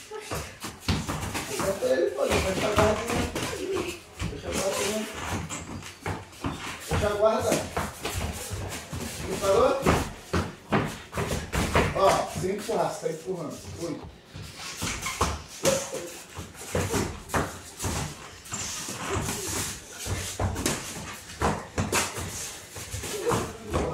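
Feet shuffle and stamp on a padded floor.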